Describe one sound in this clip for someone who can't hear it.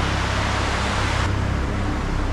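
Water rushes and splashes steadily down a large waterfall.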